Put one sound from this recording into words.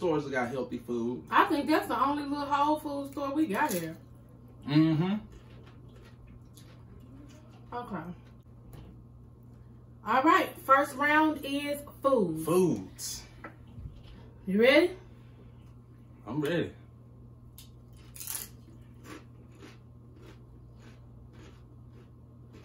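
Tortilla chips crunch while being chewed close to a microphone.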